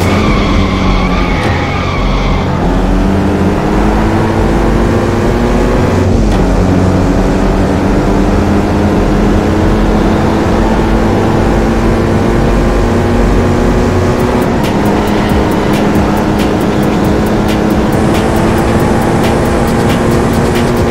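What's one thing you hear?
A racing car engine roars and climbs steadily in pitch, dipping briefly at each gear change.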